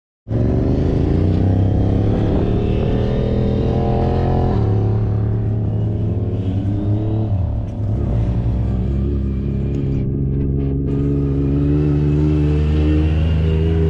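An off-road buggy engine roars and revs up and down close by.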